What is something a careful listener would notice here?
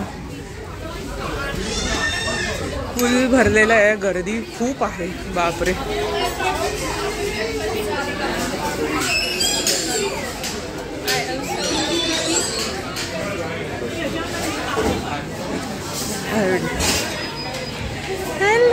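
A crowd of men and women chatter throughout a busy room.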